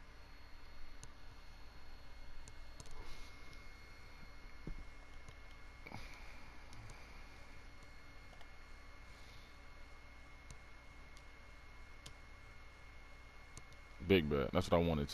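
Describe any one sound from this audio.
Short electronic clicks tick now and then.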